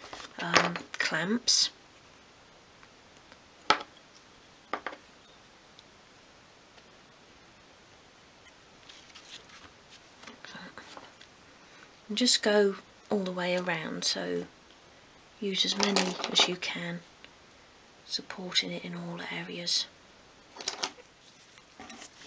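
Small spring clamps click shut onto wood.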